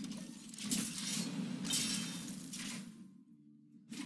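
A magical spell bursts with a shimmering whoosh and fades.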